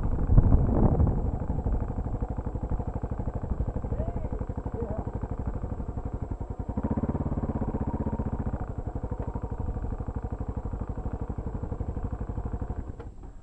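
A motorcycle engine idles with a steady, rapid throb close by.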